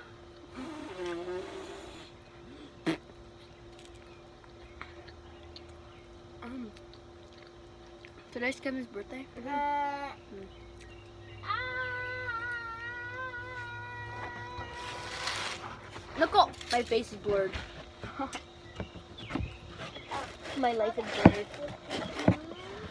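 A young girl talks and sings close by.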